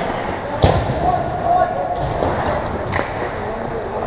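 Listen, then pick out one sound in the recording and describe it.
A hockey stick strikes a puck with a sharp crack.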